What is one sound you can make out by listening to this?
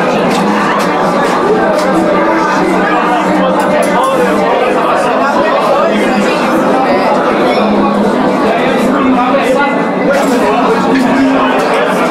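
An elderly man talks casually nearby.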